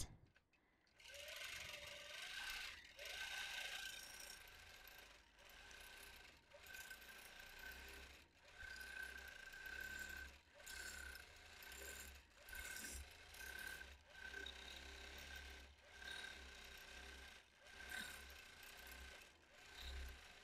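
A quilting machine hums and whirs in short bursts as it stitches.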